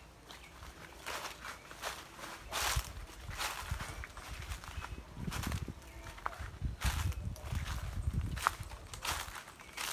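Footsteps crunch on dry fallen leaves.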